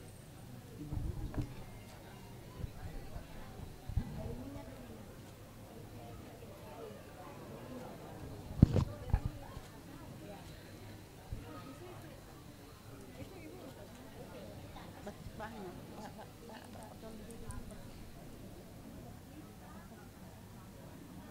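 Several men chat quietly nearby.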